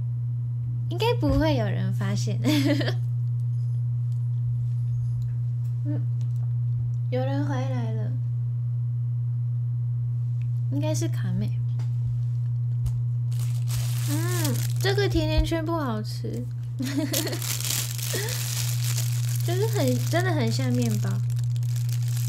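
A young woman talks close by in a soft, cheerful voice.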